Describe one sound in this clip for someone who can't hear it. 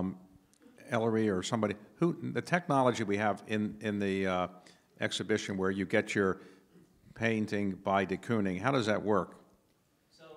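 An elderly man speaks with animation into a microphone, heard over a loudspeaker.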